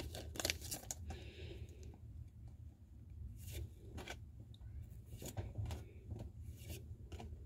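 Trading cards slide and flick against each other close by.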